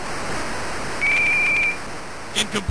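A referee's whistle blows once, sharp and steady.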